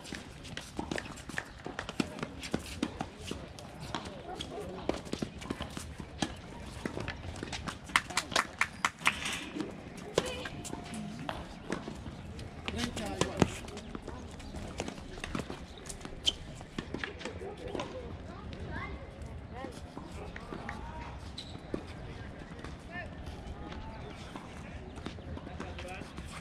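Tennis balls are hit with rackets and bounce on a hard court, outdoors.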